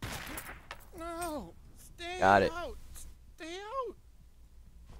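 A young girl cries out and whines in a high, distressed voice.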